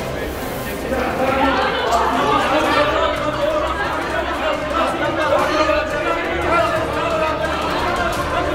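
A crowd of men and women shout angrily in a large echoing hall.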